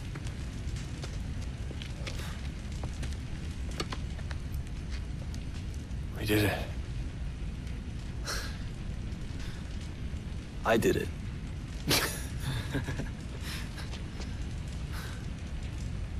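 Fire rumbles steadily.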